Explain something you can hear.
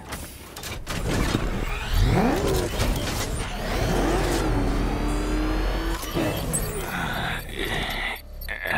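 A powerful car engine revs up and roars as it speeds away.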